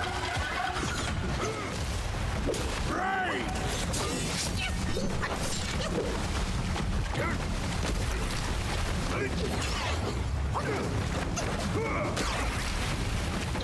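Heavy blows and clashes land in a fight.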